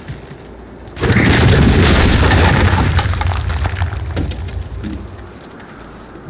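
A heavy wooden structure crashes to the ground with a deep, loud rumble.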